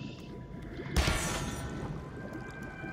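A blade strikes with a sharp crackling burst.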